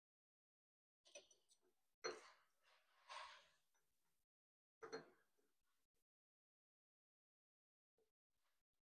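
Metal parts clank and slide as a machine clamp is adjusted by hand.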